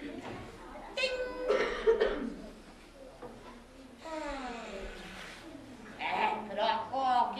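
A woman speaks nearby in a high, animated character voice.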